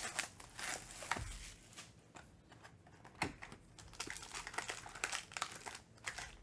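Cardboard boxes knock and slide on a table.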